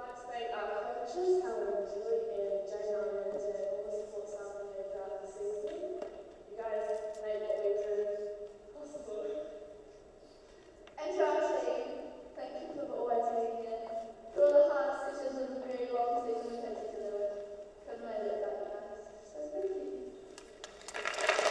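A woman sings slowly through a loudspeaker in a large echoing hall.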